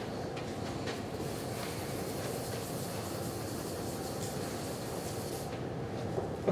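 A felt eraser rubs and swishes across a chalkboard.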